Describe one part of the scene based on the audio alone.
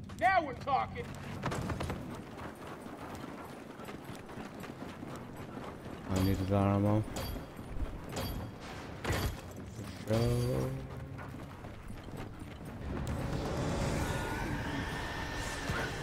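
Heavy boots thud on hard ground as a soldier runs.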